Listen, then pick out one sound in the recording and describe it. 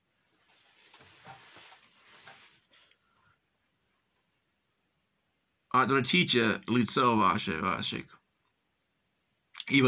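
A man speaks calmly close by, first softly, then louder.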